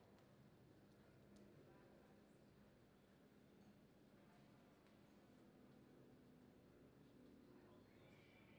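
A horse's hooves thud softly on dirt.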